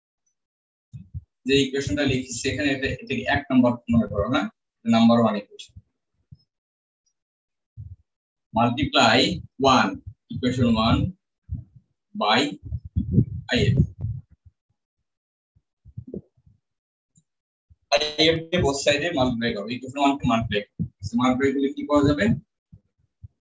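A man explains in a lecturing voice, heard through an online call.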